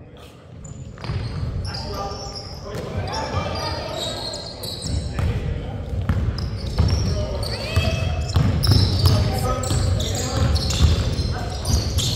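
Players call out and shout to each other across the gym.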